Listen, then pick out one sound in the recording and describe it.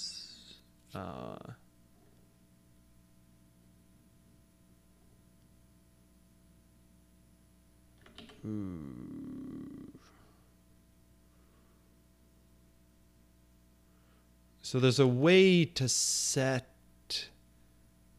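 A man speaks calmly and briefly into a close microphone.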